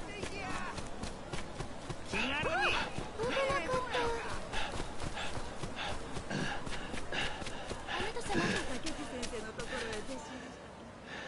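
Footsteps patter quickly on packed dirt and stone steps.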